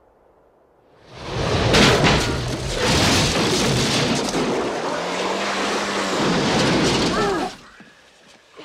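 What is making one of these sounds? A car engine roars as the car skids through snow.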